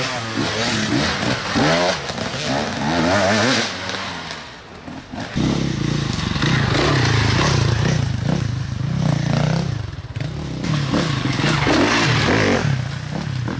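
Tyres crunch over dry leaves and dirt.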